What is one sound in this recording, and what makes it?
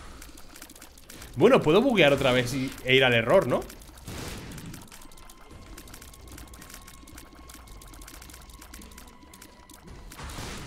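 Game sound effects pop and click quickly.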